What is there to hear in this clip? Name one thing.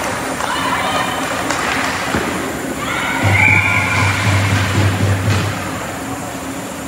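Young players shout to each other across the echoing rink.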